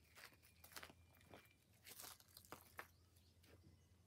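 Footsteps crunch on dry, gritty ground.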